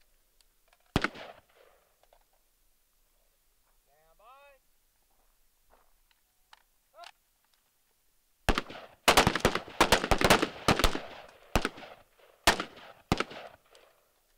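Rifle shots crack loudly outdoors, in quick bursts that echo off the hills.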